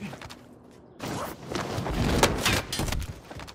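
Boots land and scrape heavily on a metal roof.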